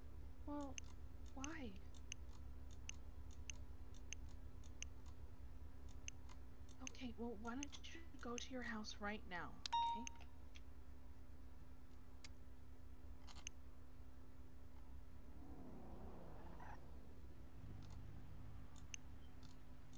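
Soft game menu clicks tick as items are moved around.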